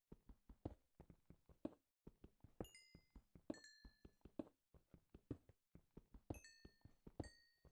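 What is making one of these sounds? A pickaxe chips rapidly at stone with sharp knocks.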